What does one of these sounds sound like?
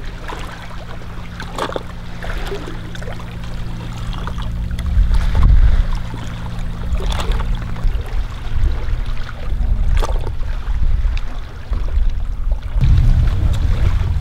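Gentle waves lap against rocks.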